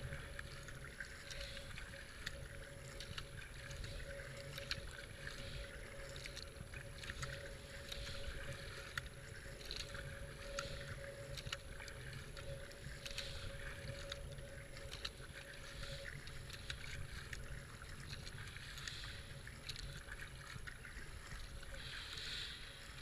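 A paddle splashes into water in a steady rhythm.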